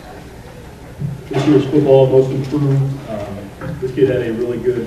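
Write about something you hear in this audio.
A man speaks through a microphone and loudspeakers in a large hall.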